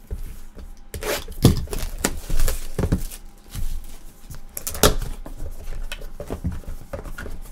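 Plastic shrink wrap crinkles as hands handle it.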